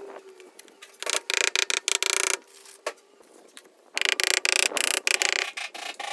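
A rubber mallet taps repeatedly on tile.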